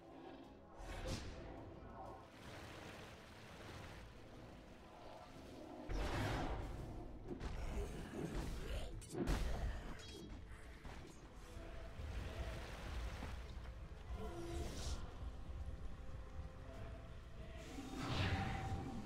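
Game sound effects of spells and attacks burst and crackle.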